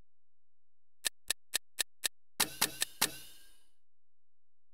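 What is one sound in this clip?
Short electronic menu clicks sound in quick succession.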